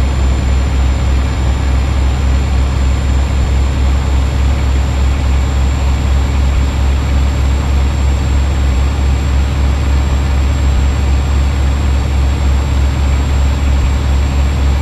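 A truck engine rumbles low and steady while driving.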